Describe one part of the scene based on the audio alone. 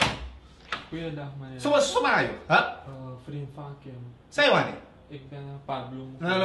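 A man speaks loudly and angrily, close by.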